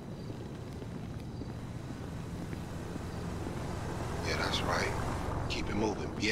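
Footsteps walk on pavement.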